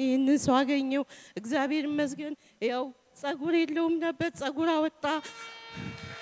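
A woman speaks emotionally in a trembling voice through a microphone.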